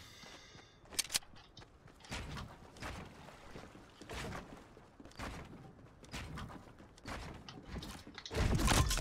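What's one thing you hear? Quick clicks and knocks of building pieces snap into place.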